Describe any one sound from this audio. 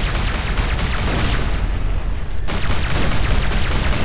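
A large blast bursts and crackles.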